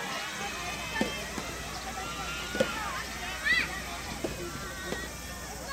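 A tennis ball is struck sharply by rackets, back and forth.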